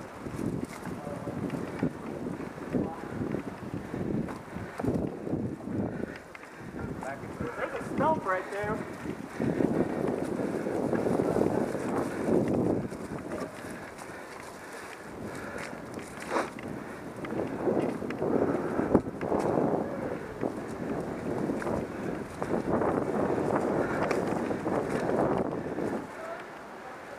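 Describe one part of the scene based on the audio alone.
Bicycle tyres crunch over dry leaves and dirt close by.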